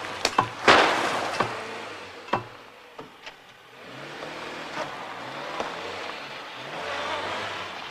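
Wooden stakes knock and clatter as a man handles them.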